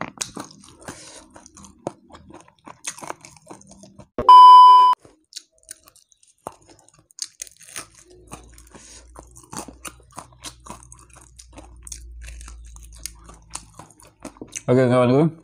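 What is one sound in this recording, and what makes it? A young man chews and smacks his lips loudly, close to a microphone.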